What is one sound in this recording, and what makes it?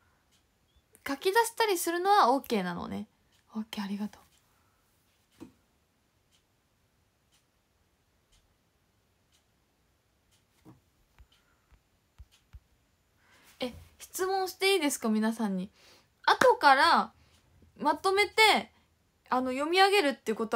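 A young woman talks with animation close to a microphone, in bursts with pauses.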